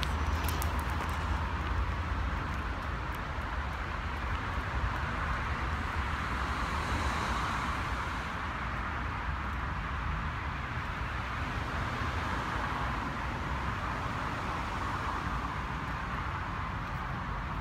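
A toddler's small shoes patter softly on a paved path.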